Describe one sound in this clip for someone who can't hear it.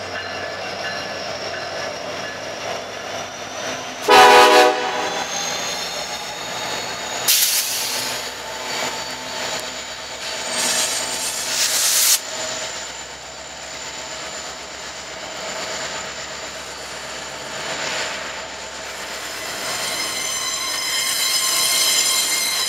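Train wheels clatter and squeal on the rails.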